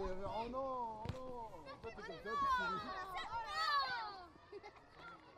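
Young children sing together nearby, outdoors.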